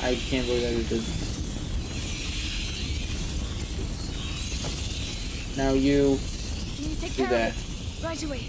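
A fire crackles in a hanging brazier.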